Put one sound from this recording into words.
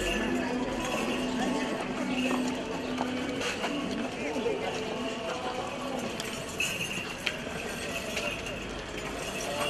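A crowd murmurs and shuffles along nearby.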